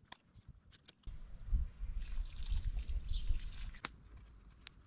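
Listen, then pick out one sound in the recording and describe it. Water splashes from a watering can onto soil.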